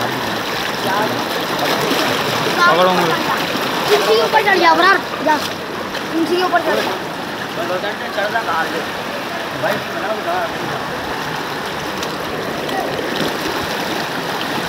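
A man wades through knee-deep floodwater.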